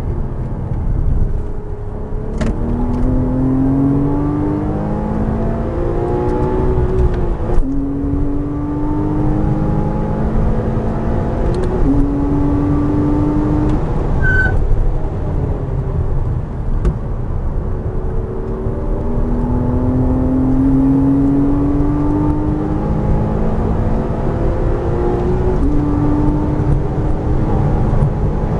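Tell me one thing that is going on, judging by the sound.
A car engine roars close up, rising in pitch as it speeds up and dropping with each gear change.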